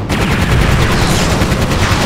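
A heavy cannon fires with booming blasts.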